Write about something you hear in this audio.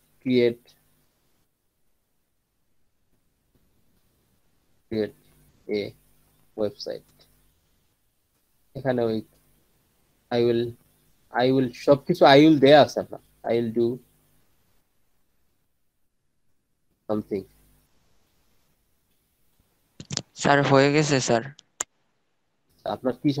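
A young man speaks calmly in short bursts over an online call.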